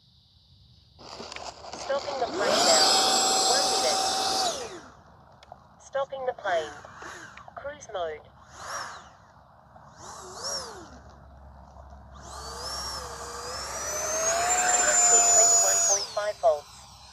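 A small jet engine whines loudly, rising and falling in pitch.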